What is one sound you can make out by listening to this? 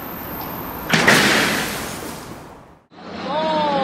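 A large glass pane shatters and crashes down.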